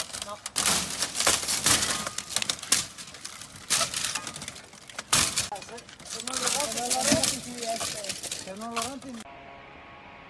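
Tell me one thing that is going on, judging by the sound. Metal tools knock and scrape against brittle plastic roofing.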